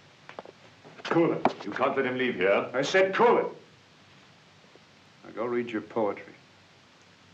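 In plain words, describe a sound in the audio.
A second man speaks in a deep, measured voice.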